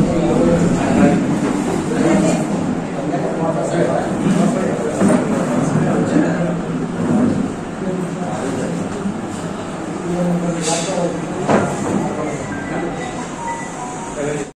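A man speaks steadily in a room full of people.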